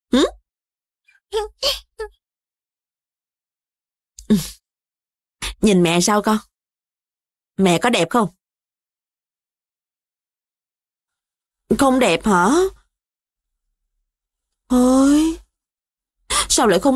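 A woman speaks close by in short, lively bursts with pauses.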